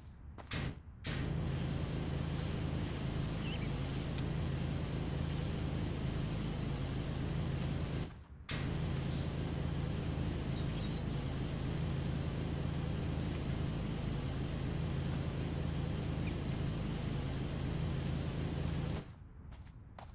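A pressure washer sprays a steady hissing jet of water.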